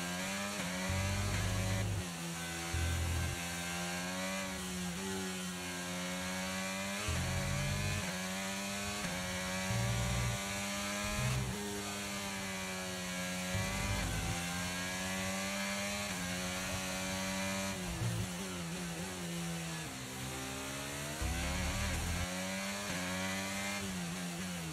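A racing car engine whines loudly, rising and falling in pitch as the gears shift.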